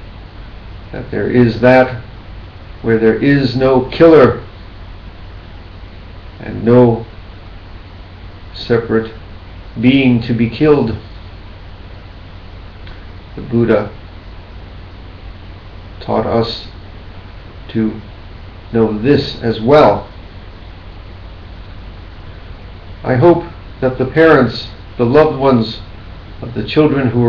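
A middle-aged man speaks calmly and slowly into a nearby microphone, with long pauses.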